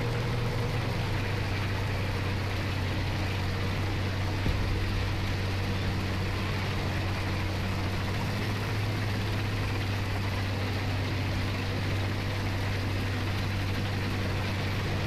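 Tank tracks clatter and squeak on a hard road.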